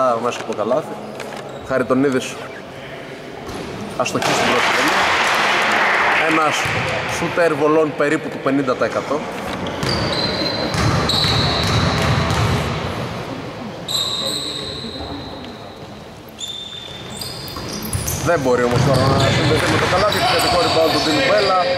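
Young men call out and talk loudly across the hall.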